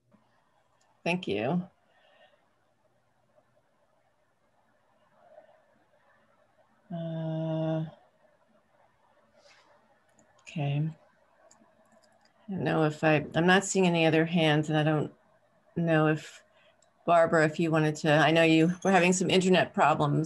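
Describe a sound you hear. A woman speaks calmly over an online call, with pauses.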